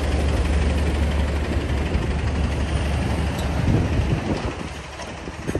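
A bus engine idles loudly nearby, then the bus moves off.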